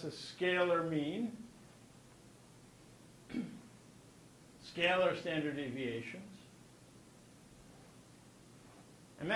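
An elderly man speaks calmly into a microphone in bursts, with pauses between.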